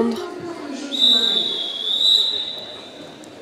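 A referee blows a long whistle blast.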